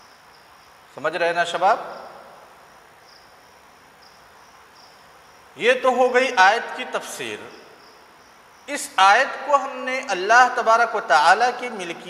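A man speaks calmly into a clip-on microphone, close by, in short bursts with pauses.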